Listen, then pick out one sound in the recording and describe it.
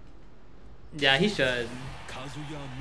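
A man shouts out excitedly.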